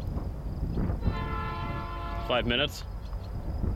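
A locomotive horn blares loudly.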